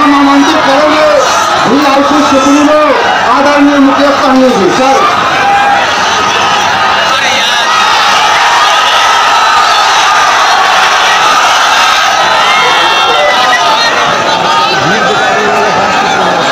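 A large crowd murmurs in the background.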